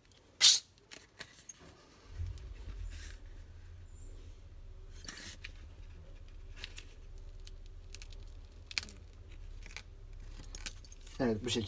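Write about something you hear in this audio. A metal watch band clicks and clinks as it is fastened on a wrist.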